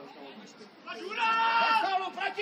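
A crowd of players cheers loudly.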